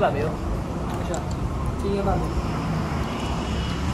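A spoon stirs a drink in a glass.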